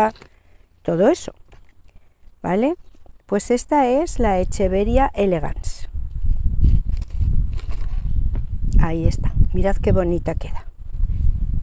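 A middle-aged woman talks calmly and close by.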